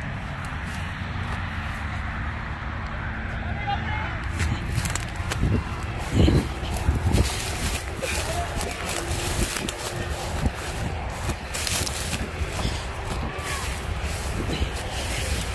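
Leaves and grass rustle and brush close by.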